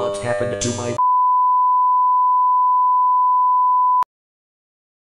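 A steady high test tone sounds, then cuts off.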